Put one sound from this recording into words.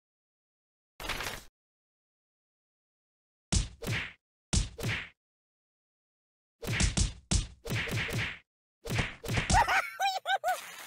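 Cartoonish thuds and smacks land in quick bursts.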